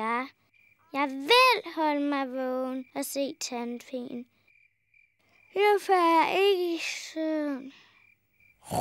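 A young girl talks with animation, close by.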